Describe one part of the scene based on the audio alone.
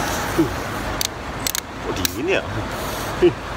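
A drink can snaps open with a hiss.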